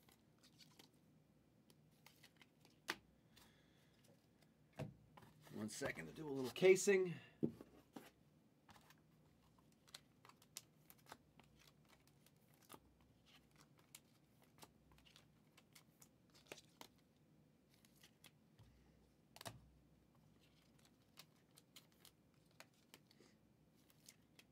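Cards click and rustle as they are handled.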